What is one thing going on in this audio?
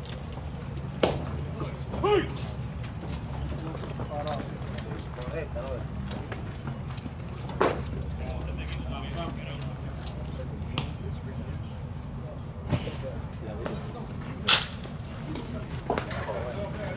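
A baseball smacks sharply into a catcher's mitt several times.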